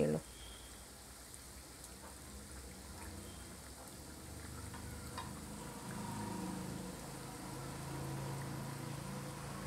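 Hot oil sizzles and crackles steadily as food fries.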